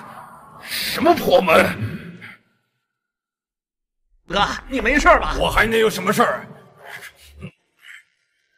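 A middle-aged man sobs and wails loudly, close by.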